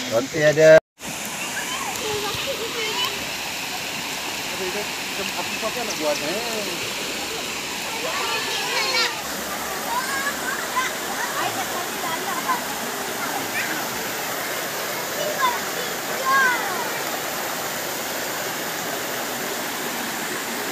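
Water rushes steadily over rocks.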